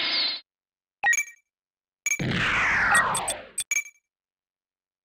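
Short electronic blips sound a few times.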